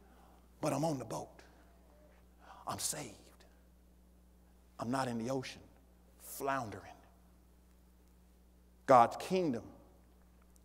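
A middle-aged man preaches through a microphone with animation, in short bursts with pauses.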